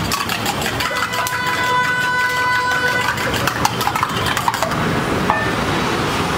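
A metal cup clinks against a griddle.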